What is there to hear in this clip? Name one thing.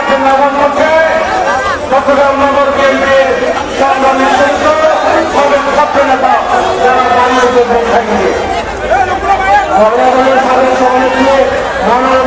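A crowd of men and women chants loudly together outdoors.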